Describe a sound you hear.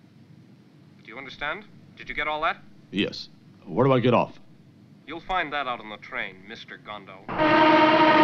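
A man speaks tensely into a telephone, close by.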